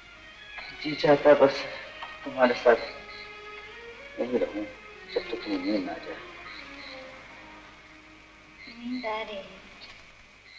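A woman speaks weakly and haltingly nearby.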